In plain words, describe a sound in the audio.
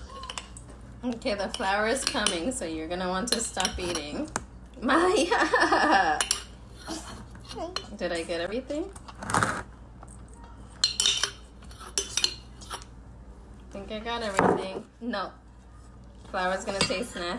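A young girl talks and laughs close by.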